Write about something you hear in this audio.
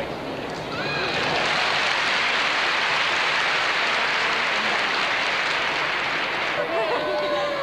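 A crowd claps and cheers loudly in a large echoing hall.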